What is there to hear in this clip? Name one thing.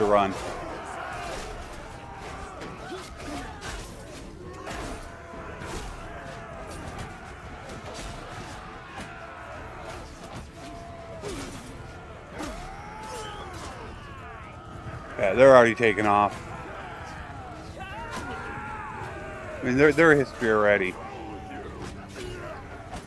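Weapons clash and strike against shields and armour.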